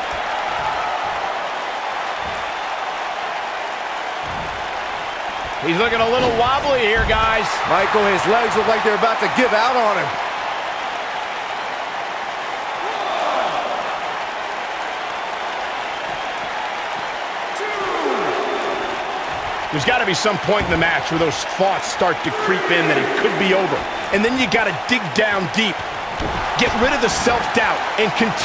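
A large crowd murmurs and cheers steadily in a big arena.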